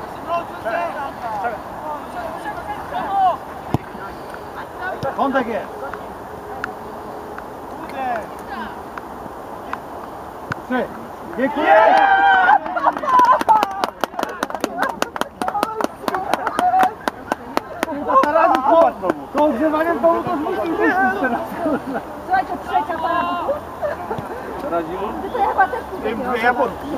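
Teenage boys shout to each other across an open outdoor pitch.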